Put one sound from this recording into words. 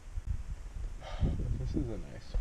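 A young man speaks calmly close to a microphone.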